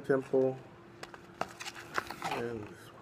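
A cardboard box slides and taps against another box.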